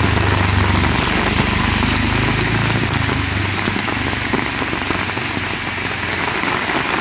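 A motorcycle engine rumbles past and fades away.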